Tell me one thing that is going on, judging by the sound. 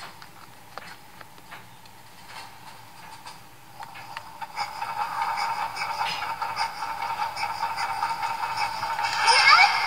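Fingers tap and click on a handheld game console's buttons.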